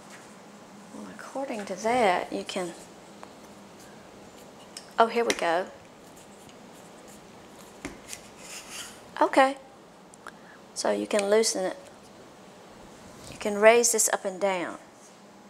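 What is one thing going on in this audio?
An older woman talks calmly into a clip-on microphone, pausing between phrases.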